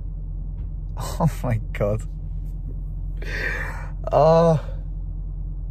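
A young man laughs loudly.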